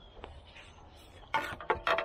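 A shovel scrapes into soil.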